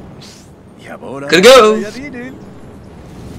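A cartoon man babbles a quick comic phrase.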